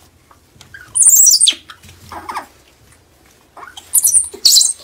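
A monkey squeals shrilly.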